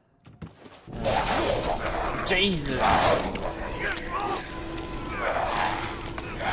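A monster snarls and growls fiercely up close.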